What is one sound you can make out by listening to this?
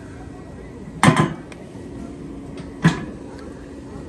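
A metal serving lid rolls and clanks.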